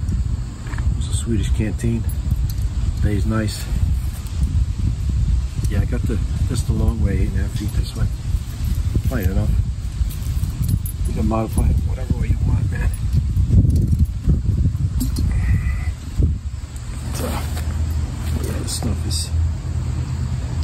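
A middle-aged man talks calmly close to a microphone.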